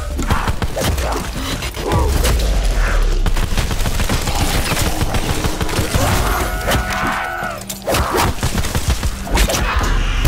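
A gun fires rapid, sharp shots.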